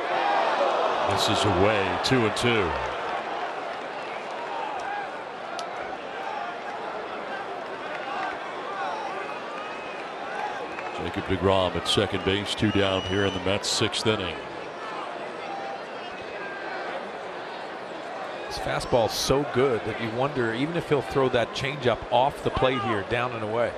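A large stadium crowd murmurs and cheers in the open air.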